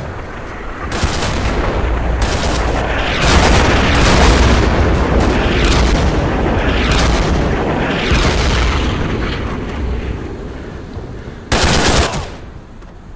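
Explosions boom and rumble close by.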